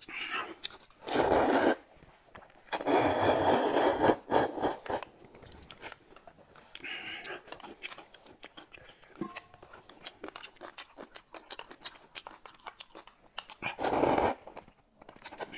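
A young man loudly slurps noodles close by.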